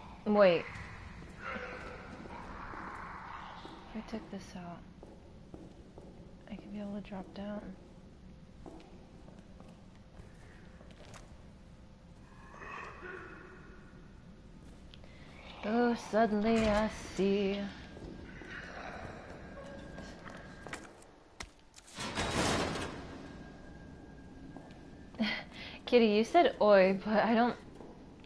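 A young woman talks casually into a microphone, in short bursts.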